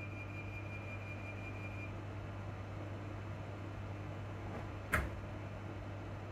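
A train hums and rumbles steadily while moving.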